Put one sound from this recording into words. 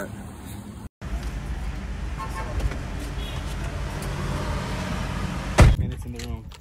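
A car engine hums steadily from inside a car.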